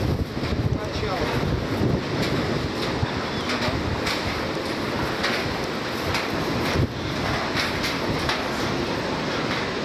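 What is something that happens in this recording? Footsteps thud on a wooden boardwalk.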